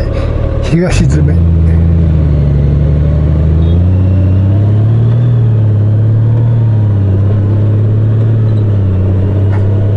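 A touring motorcycle engine pulls away and accelerates.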